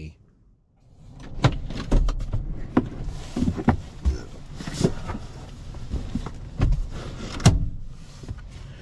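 Thumps and rustling sound as a man climbs into a seat.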